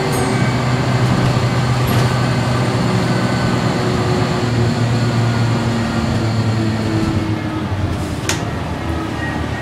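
The bus rattles and creaks as it drives along the road.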